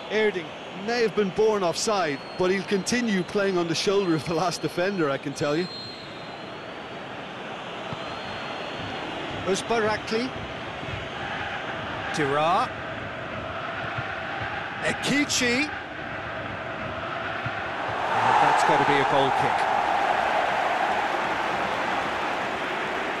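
A stadium crowd roars steadily, swelling louder near the end.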